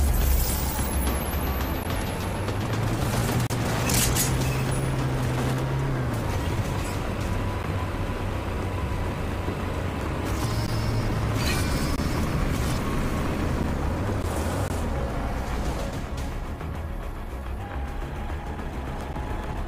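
A vehicle engine rumbles and roars steadily.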